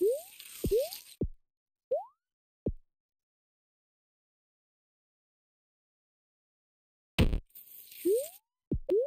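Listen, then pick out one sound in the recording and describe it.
Short rising electronic chirps sound as a game figure jumps.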